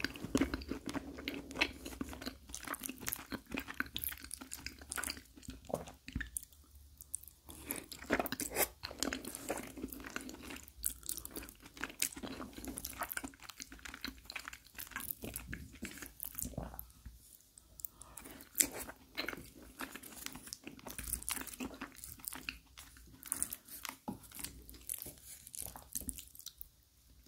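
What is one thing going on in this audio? A wooden fork scrapes and taps against a plate.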